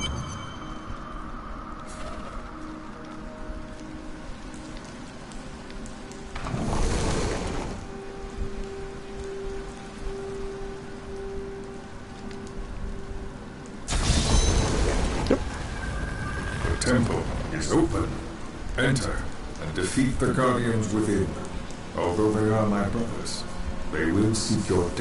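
Swords clash and bones rattle as skeletons fight.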